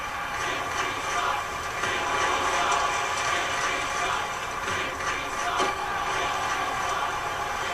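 A stadium crowd roars steadily through a television speaker.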